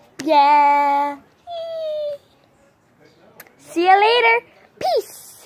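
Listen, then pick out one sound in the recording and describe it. A young girl sings long, high notes loudly, close by.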